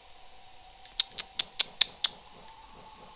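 Bright clicking ticks sound in quick succession.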